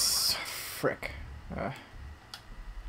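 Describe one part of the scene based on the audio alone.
Short electronic menu blips sound as a selection moves.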